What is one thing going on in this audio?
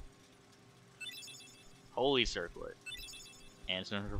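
A short bright chime rings twice.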